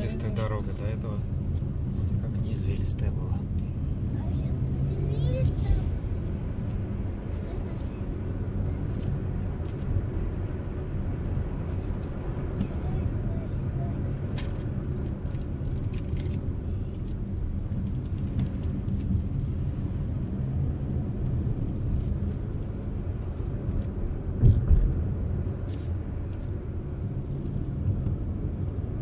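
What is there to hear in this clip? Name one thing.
Tyres rumble on the road surface.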